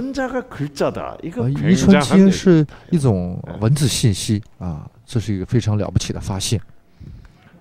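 A middle-aged man speaks with animation through a microphone in an echoing room.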